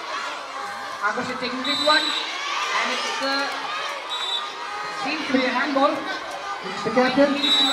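Young boys shout to each other nearby.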